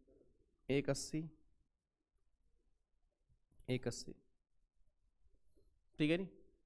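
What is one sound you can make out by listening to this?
A man speaks calmly into a close microphone, in short bursts.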